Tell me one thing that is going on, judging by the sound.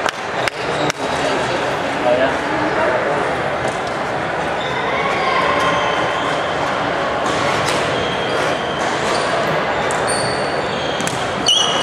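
A crowd chatters steadily in a large echoing hall.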